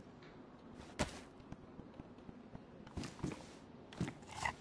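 Footsteps tread on a hard tiled floor.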